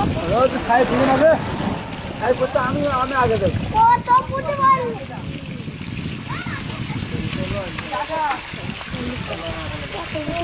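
Muddy water gushes and splashes steadily.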